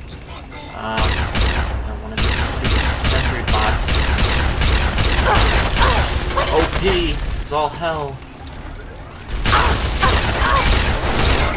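A heavy gun fires rapid crackling energy bursts.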